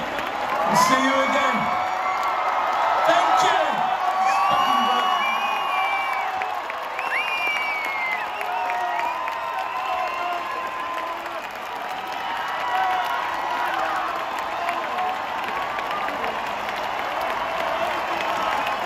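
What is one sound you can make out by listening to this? A huge crowd sings and cheers loudly in a vast open-air venue.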